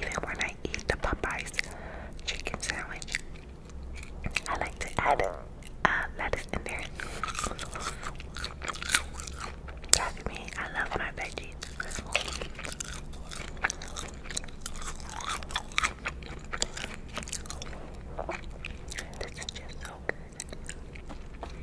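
Crisp fries crunch as a young woman chews close to a microphone.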